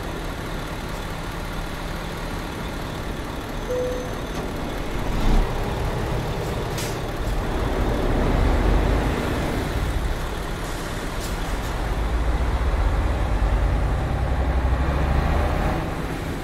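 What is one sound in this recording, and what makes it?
A bus engine rumbles steadily and grows louder as the bus pulls away.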